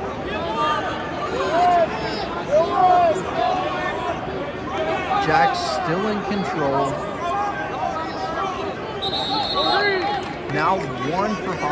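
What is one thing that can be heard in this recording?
Spectators cheer and yell loudly.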